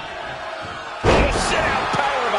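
A body slams hard onto a wrestling ring mat with a heavy thud.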